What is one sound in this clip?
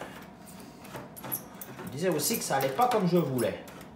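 A screwdriver scrapes and clicks as it loosens a screw.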